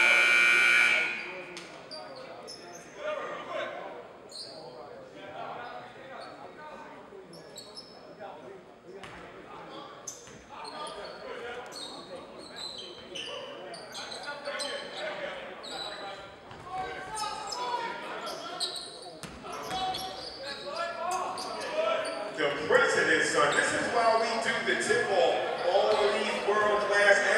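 A crowd murmurs and chatters in an echoing gym.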